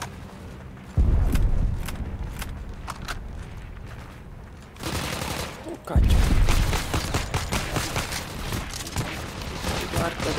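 Gunshots bang loudly.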